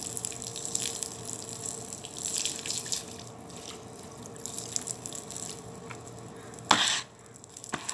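Water sprays from a hose and splashes onto a hard floor.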